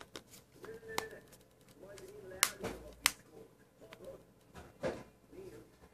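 A plastic phone case clicks and snaps as hands handle it.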